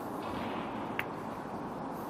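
Snooker balls clack together as the cue ball breaks into the pack.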